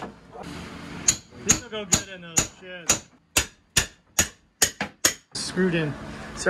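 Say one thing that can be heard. A hammer knocks sharply on wood.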